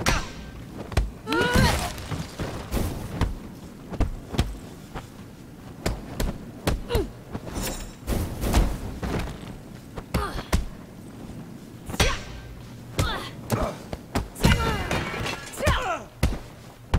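Punches and kicks land with heavy thuds, many times in quick bursts.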